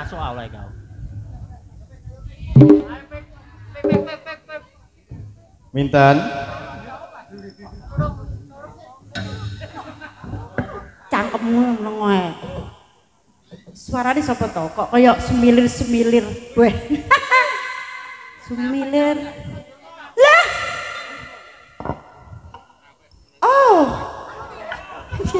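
A woman talks with animation through a microphone over a loudspeaker.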